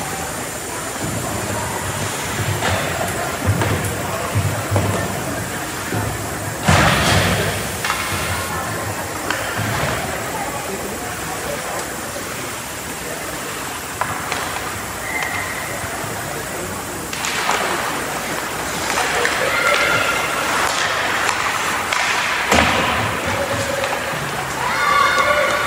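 Hockey sticks clack against a puck and the ice.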